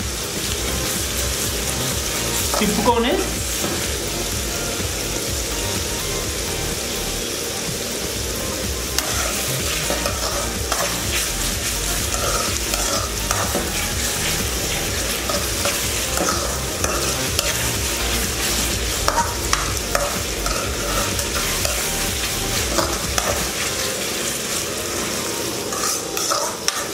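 A metal spatula scrapes and clanks against a metal pan.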